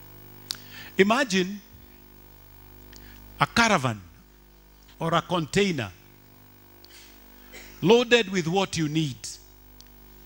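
A middle-aged man preaches with animation into a microphone, in short bursts with pauses.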